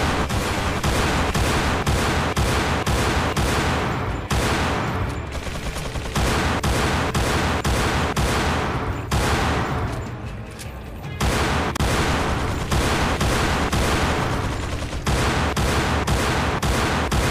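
A pistol fires rapid shots in quick succession.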